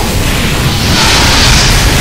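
A flamethrower roars in a burst of fire.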